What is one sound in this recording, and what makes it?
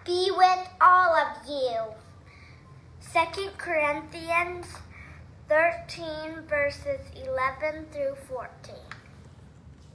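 Young girls read out aloud through a small loudspeaker.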